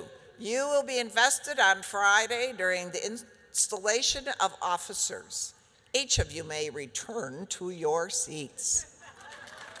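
A woman speaks through a loudspeaker in a large hall.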